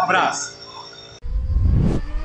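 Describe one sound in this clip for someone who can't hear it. A man speaks cheerfully close to a phone microphone.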